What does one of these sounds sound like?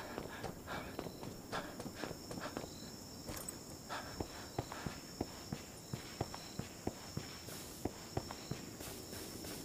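Footsteps crunch steadily on gravel and grass.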